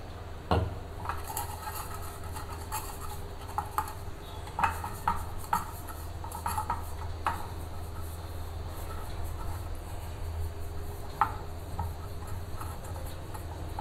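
Fingers rub and scrape softly inside a metal tin.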